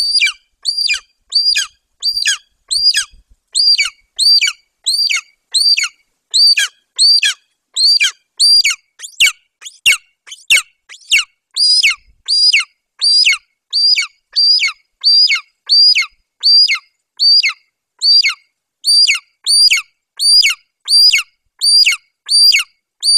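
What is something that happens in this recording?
An eagle gives high, piercing, downward-sliding cries over and over at a steady pace.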